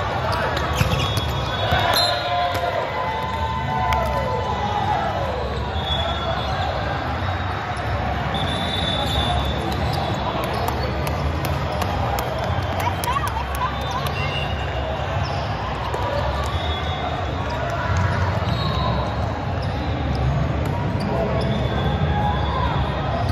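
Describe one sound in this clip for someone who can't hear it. Teenage boys call out and chatter in a large echoing hall.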